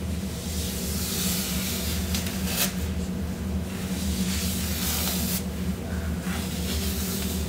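A comb pulls softly through wet hair.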